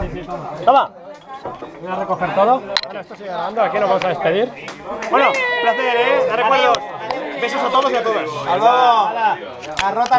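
Men talk and shout excitedly nearby.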